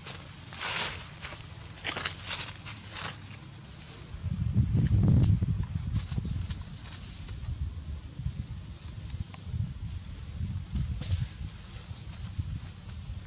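Monkeys scuffle and rustle through dry leaves.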